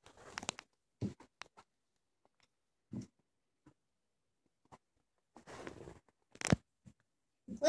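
A young boy speaks quietly, close by.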